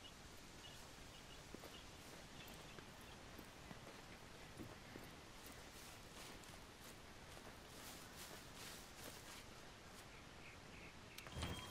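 Footsteps crunch softly on dirt and grass.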